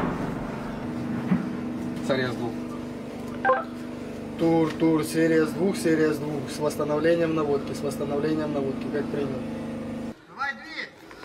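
A man speaks into a handheld radio close by, in a low, steady voice.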